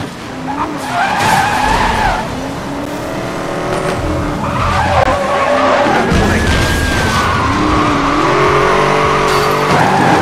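Car tyres screech while drifting.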